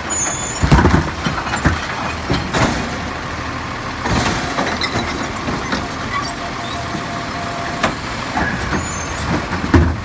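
A mechanical arm whines and clanks as it lifts and tips a wheeled bin.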